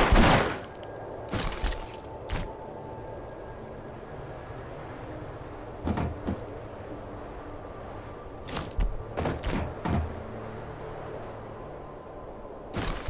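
Heavy footsteps clang on a metal walkway.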